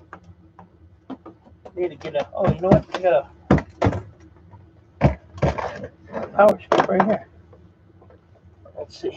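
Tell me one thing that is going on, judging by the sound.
Cables rustle and clatter as they are handled.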